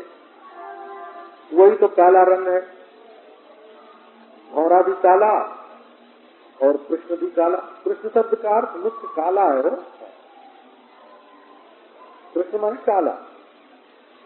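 An elderly man speaks calmly, in short phrases with pauses.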